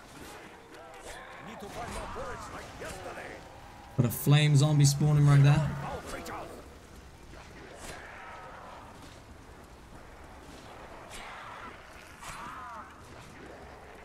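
Zombies growl and moan.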